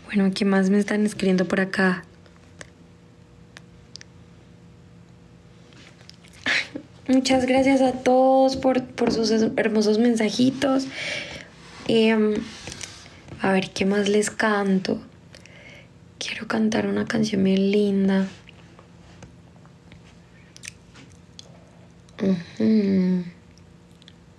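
A young woman talks animatedly, close to a microphone, with pauses.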